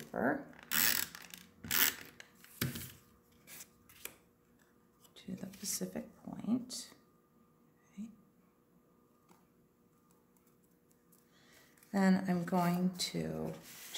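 Paper rustles and scrapes as it is handled.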